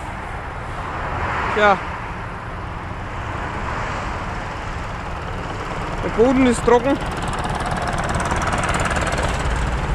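A tractor engine idles with a low rumble.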